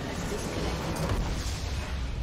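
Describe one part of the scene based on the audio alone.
A video game base explodes with a loud burst.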